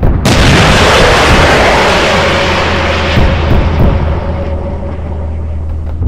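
A missile whooshes past.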